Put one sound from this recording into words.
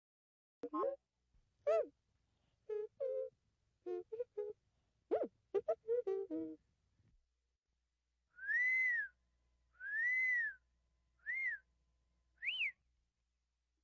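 A small robot chirps and whistles.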